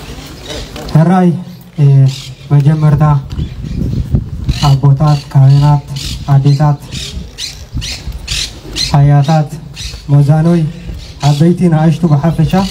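A young man speaks loudly through a microphone and loudspeakers outdoors.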